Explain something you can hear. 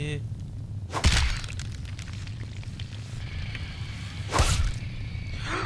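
A giant spider's legs strike the ground with sharp, heavy thuds.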